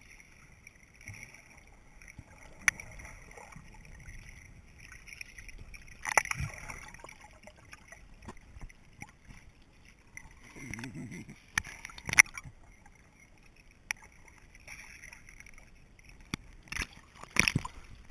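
Water bubbles and gurgles, heard muffled underwater.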